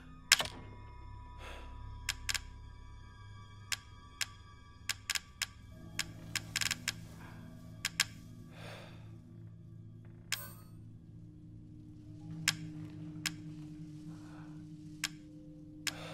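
Short interface clicks tick again and again as a menu selection moves.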